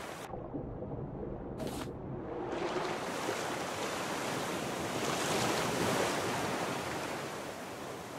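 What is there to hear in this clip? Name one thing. Water rushes and swirls around a swimmer moving underwater.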